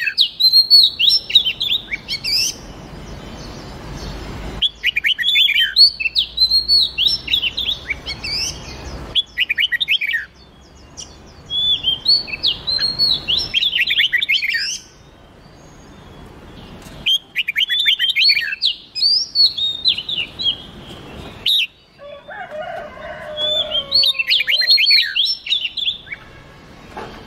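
A songbird sings a rapid series of bright, warbling phrases with short pauses between them.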